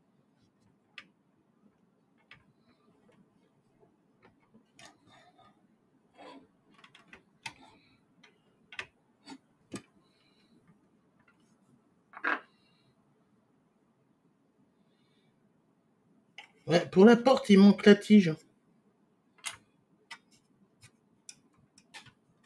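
Plastic parts click and rattle as hands handle them.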